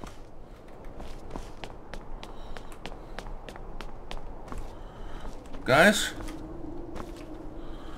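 Footsteps crunch steadily over snow and rock.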